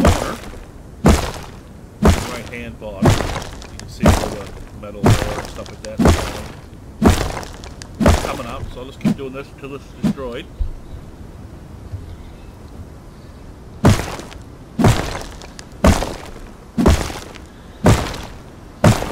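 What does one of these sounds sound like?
A rock strikes stone with sharp, regular knocks.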